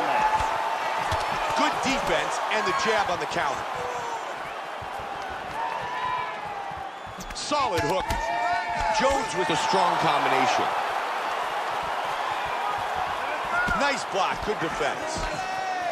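A crowd roars.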